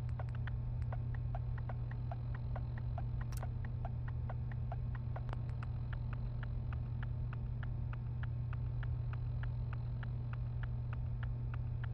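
Soft interface clicks tick in a quick, steady rhythm.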